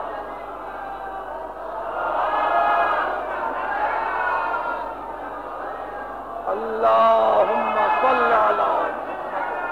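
An elderly man speaks with animation.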